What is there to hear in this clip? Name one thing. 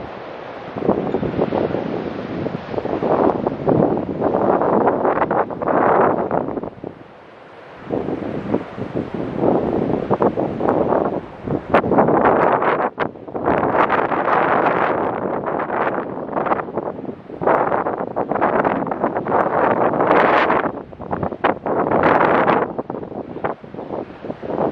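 Heavy waves crash and roar against a pier.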